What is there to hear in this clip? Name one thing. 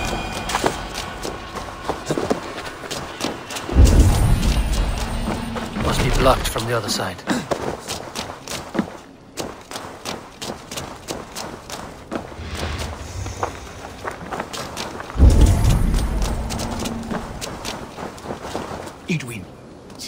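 Footsteps crunch quickly over dirt and wooden boards.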